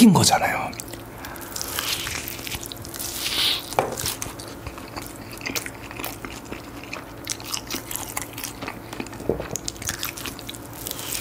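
A young man chews crunchy fried chicken noisily.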